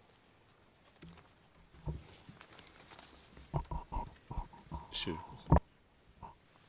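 A man speaks haltingly into a microphone.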